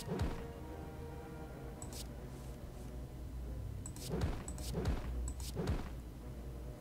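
Magic attack effects whoosh and strike in quick bursts.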